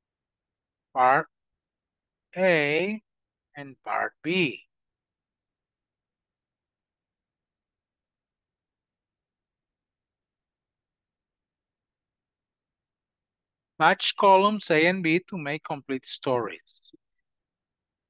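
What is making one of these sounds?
An elderly man speaks calmly over an online call, in short bursts with pauses.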